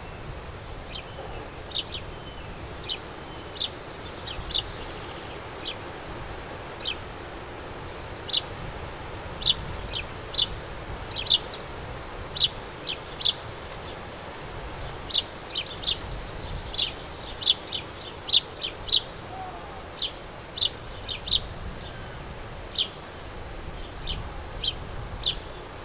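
A sparrow chirps repeatedly in short, sharp notes close by.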